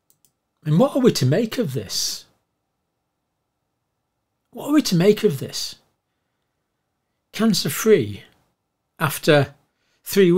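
An elderly man speaks calmly and close to the microphone, in short phrases with pauses.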